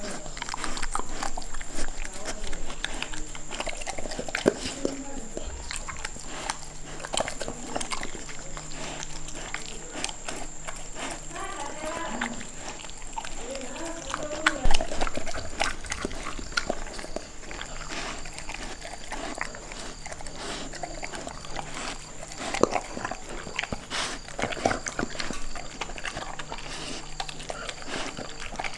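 Food scrapes and clinks against a metal bowl.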